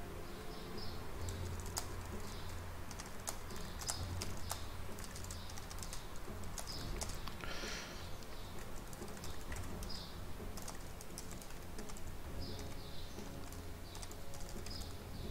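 Keys clack quickly on a keyboard close by.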